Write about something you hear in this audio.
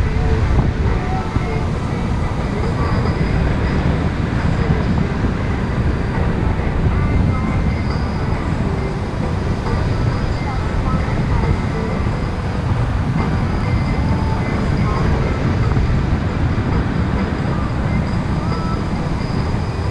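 Strong wind buffets and roars steadily, high up in the open air.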